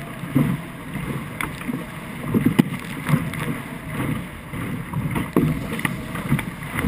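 Water slaps and splashes against a boat's hull.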